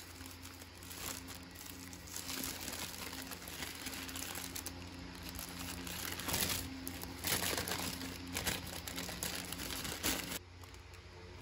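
Paper wrapping crinkles as it is peeled open.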